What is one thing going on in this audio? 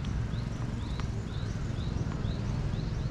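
A tennis ball bounces a few times on a clay court.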